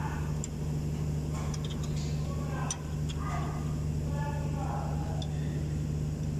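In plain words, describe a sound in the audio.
Metal tools click and clink against engine parts.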